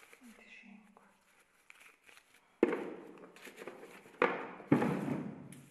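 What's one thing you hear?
Paper rustles in someone's hands.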